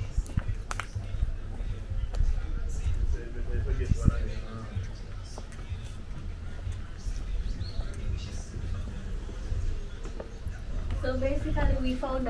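Footsteps tap on stone paving and steps.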